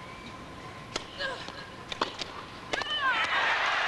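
Tennis balls are struck with sharp pops in a rally.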